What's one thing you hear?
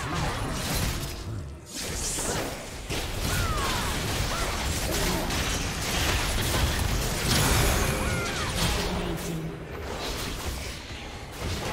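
Spell effects whoosh and crackle in a fast game battle.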